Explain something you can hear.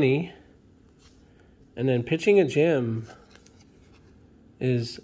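Trading cards rustle softly as hands shuffle them.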